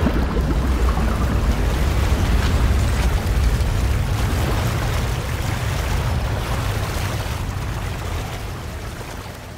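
Large gears grind with a deep, steady rumble that slowly fades.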